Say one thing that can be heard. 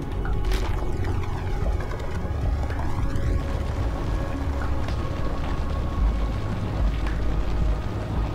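A low engine rumble drones steadily.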